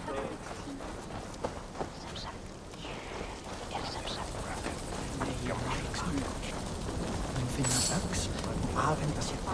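Footsteps crunch on dirt and grass at a quick pace.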